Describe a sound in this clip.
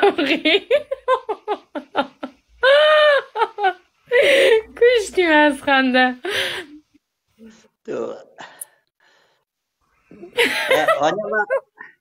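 An elderly man laughs over an online call.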